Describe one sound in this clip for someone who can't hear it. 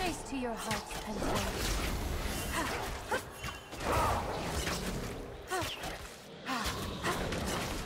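Sharp hits land in quick bursts during a game fight.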